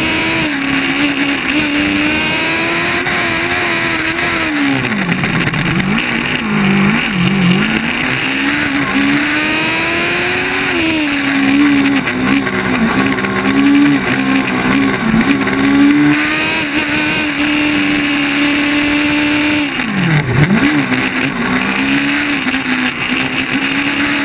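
A race car engine drones loudly close by, its pitch rising and dropping sharply as the car brakes and accelerates.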